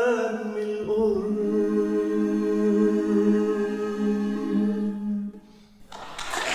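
A choir sings together in a large hall.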